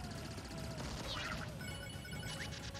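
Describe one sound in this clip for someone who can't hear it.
A bright chime rings as points are collected.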